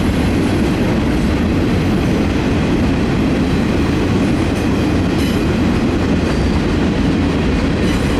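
Freight train cars rumble and clatter steadily past, close by.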